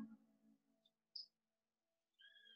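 An acoustic guitar chord rings out and fades.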